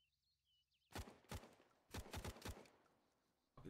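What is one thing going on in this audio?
Rapid gunshots crack close by.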